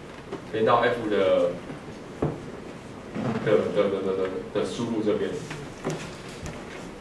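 A young man speaks through a microphone in a large echoing hall.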